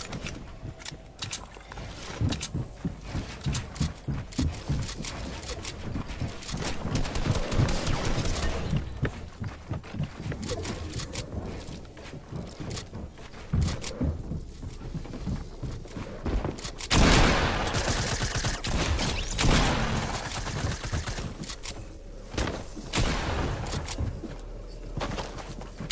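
Wooden walls clatter and thud as they are rapidly built.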